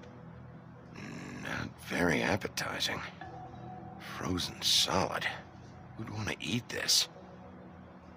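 A man speaks in a low, tired voice, close by.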